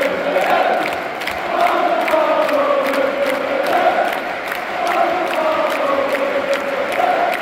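A large crowd of football supporters chants in unison in an open stadium.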